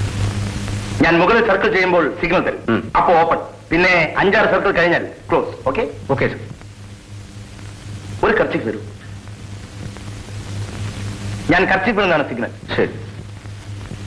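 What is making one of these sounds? A man speaks loudly and with animation.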